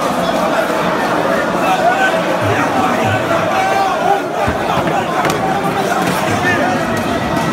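A crowd of men talks and shouts loudly in a large echoing hall.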